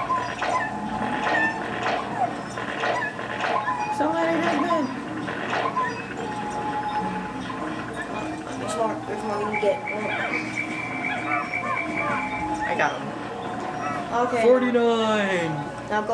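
Small creatures chirp and squeak in tiny high voices.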